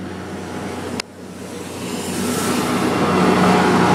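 A train approaches and roars past loudly.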